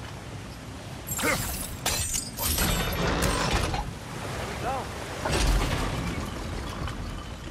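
Heavy wooden machinery clanks and rumbles loudly.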